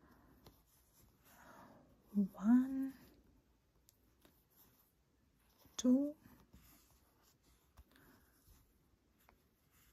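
A crochet hook softly scrapes through yarn.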